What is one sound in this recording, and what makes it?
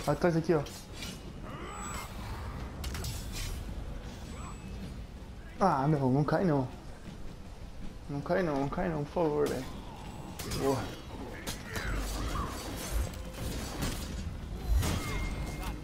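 Swords clash and ring with sharp metallic strikes.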